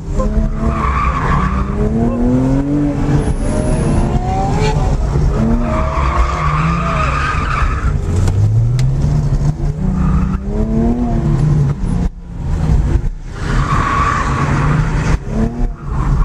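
Tyres squeal on pavement in short bursts during turns.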